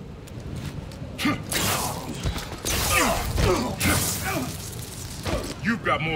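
Blows and thuds land in a fight.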